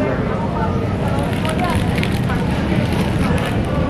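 Paper wrapping rustles and crinkles.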